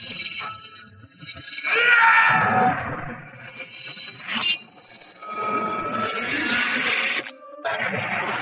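A magical energy blast whooshes and crackles.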